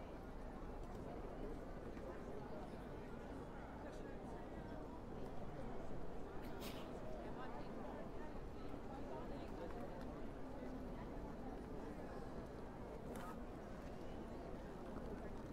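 Footsteps of passers-by patter on paving stones.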